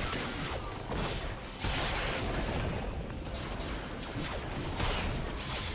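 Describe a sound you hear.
Magic spells whoosh and crackle in a fight.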